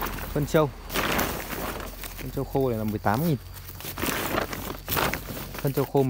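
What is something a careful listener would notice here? A plastic tarp rustles and crinkles as it is pulled aside.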